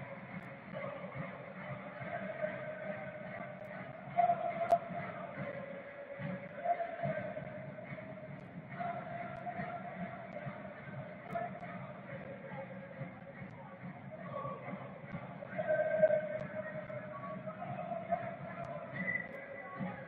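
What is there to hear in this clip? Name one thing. A large crowd sings and chants steadily across an open stadium.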